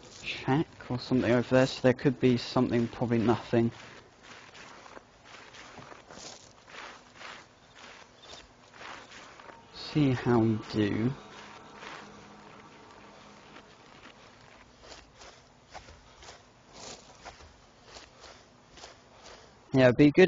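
Grass rustles softly as someone crawls through it.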